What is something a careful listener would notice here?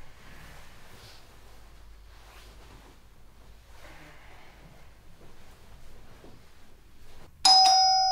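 Fabric rustles as a jacket is pulled off and tossed aside.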